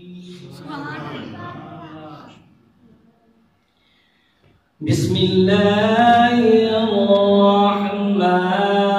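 A man chants in a long, melodic voice through a microphone and loudspeakers.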